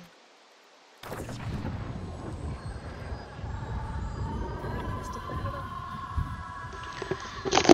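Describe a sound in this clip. A magical shimmering whoosh swells and hums.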